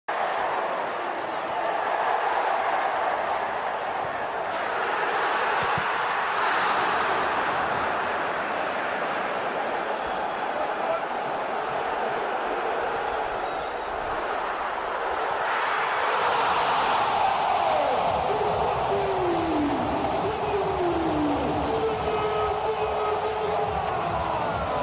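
A large stadium crowd roars and chants throughout.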